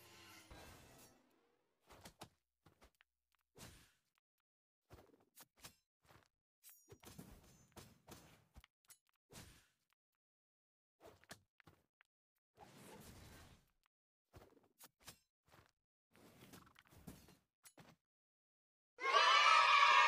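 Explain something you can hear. Swords clash and magic blasts burst in quick, scattered bursts.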